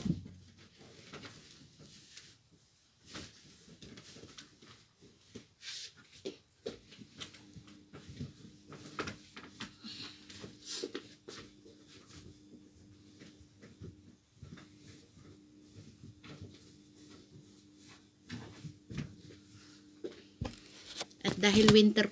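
Bedsheets rustle and swish.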